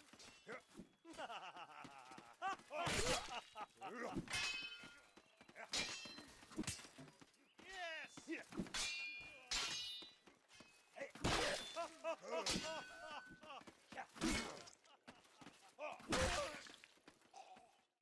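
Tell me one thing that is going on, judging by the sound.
Steel swords clash with sharp metallic rings.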